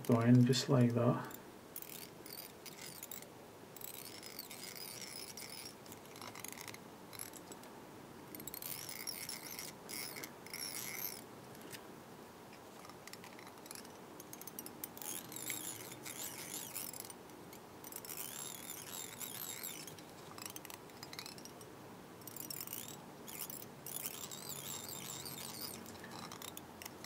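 Thread rasps softly as fingers wind it around a hook.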